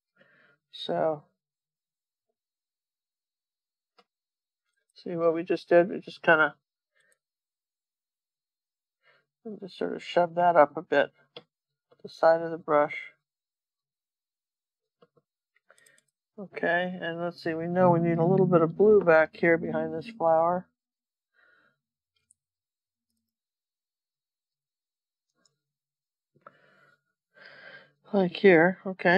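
An elderly woman talks calmly into a close microphone, in short bursts with pauses.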